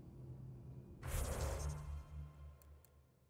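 A loud whoosh sweeps in as a menu opens.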